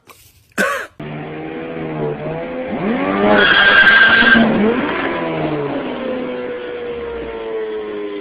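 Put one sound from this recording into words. Motorcycle engines rumble and rev close by.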